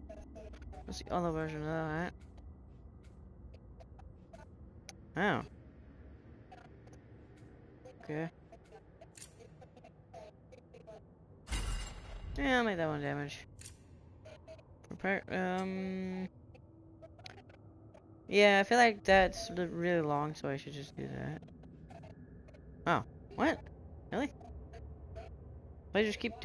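Short game menu sounds chime and click as selections change.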